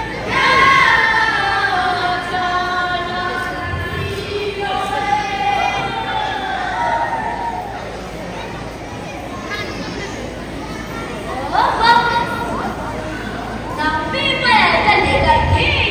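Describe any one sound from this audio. A song with singing plays loudly over a loudspeaker.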